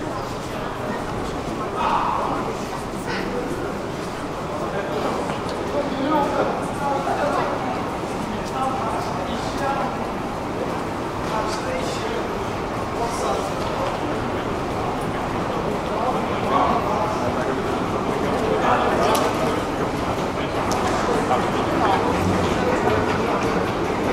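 A crowd murmurs in a large, echoing hall.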